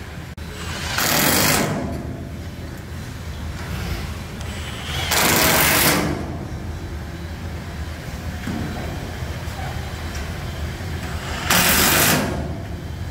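A cordless impact driver whirs and rattles in short bursts.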